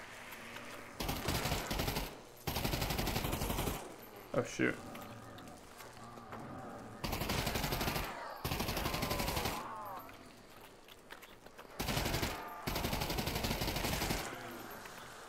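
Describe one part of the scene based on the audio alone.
A rifle fires in rapid bursts of automatic gunfire.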